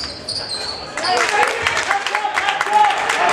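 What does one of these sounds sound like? A crowd in a large echoing gym cheers and shouts loudly.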